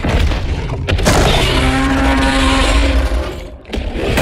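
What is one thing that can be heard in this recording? A huge creature roars.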